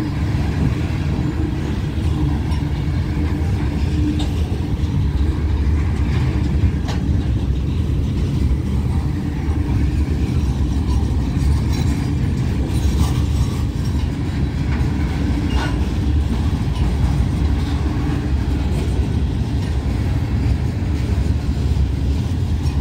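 Freight cars rumble and roll past close by on the rails.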